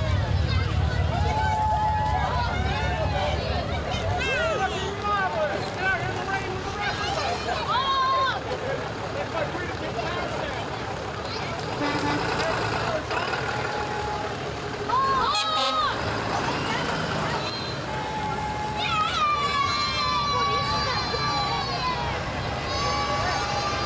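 A crowd chatters and calls out outdoors.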